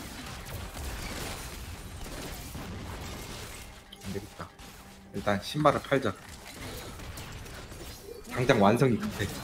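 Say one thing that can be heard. Magic spells whoosh and crackle in a chaotic fight.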